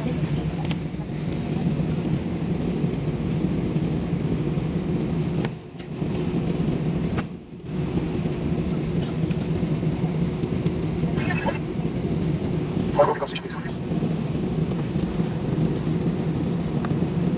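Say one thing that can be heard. Jet engines hum steadily from inside an airplane cabin.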